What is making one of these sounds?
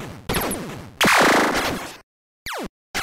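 An electronic explosion bursts loudly.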